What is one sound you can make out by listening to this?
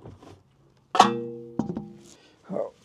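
A metal wheel clanks onto a hub with a brief ring.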